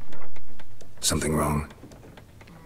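An older man speaks in a deep, measured voice.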